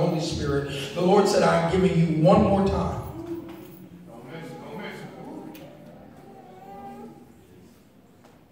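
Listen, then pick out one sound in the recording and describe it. A man speaks loudly and fervently through a microphone in an echoing hall.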